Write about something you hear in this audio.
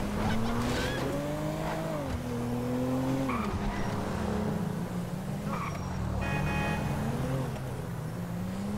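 A car engine hums steadily and revs up and down as the car drives along.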